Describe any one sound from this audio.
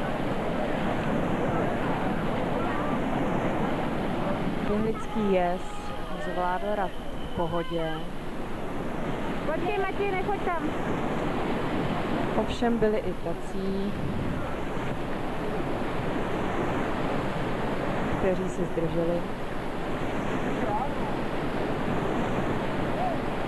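Whitewater rushes and churns loudly throughout.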